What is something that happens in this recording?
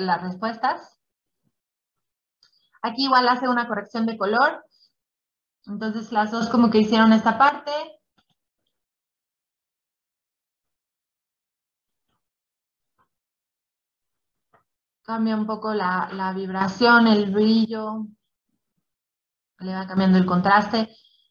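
A young woman speaks calmly over an online call, pausing between phrases.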